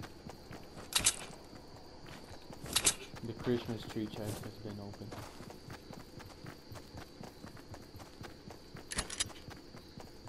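A rifle fires sharp single shots.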